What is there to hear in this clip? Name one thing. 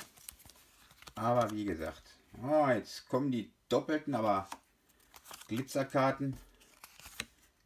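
Trading cards slide and tap against each other.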